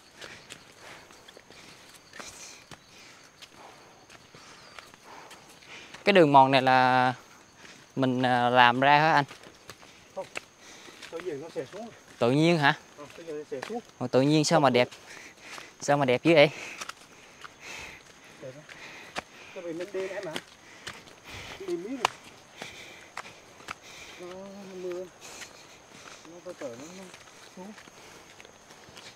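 Footsteps crunch on a dirt path with dry leaves.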